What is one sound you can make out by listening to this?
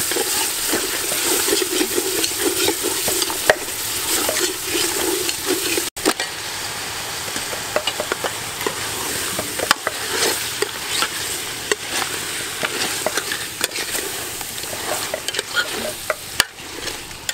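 Food sizzles and crackles in a hot pot.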